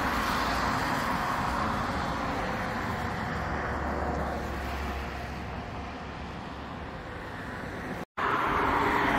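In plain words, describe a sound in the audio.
Wind blows steadily outdoors.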